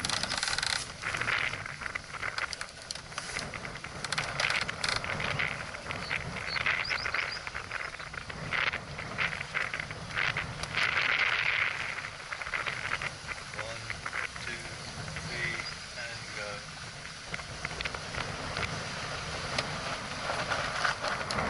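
Wind gusts and buffets loudly outdoors.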